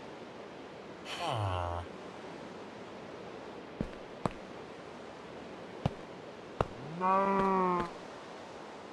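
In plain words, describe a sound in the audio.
A game villager grunts with a low, nasal hum.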